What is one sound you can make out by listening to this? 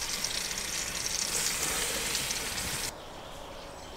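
Meat sizzles and fire crackles in a hot oven.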